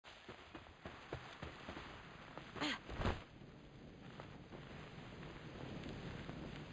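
Footsteps crunch quickly over sand.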